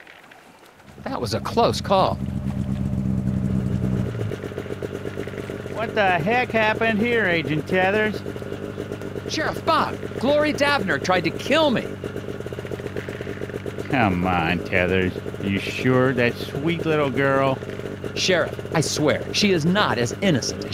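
A snowmobile engine rumbles and idles nearby.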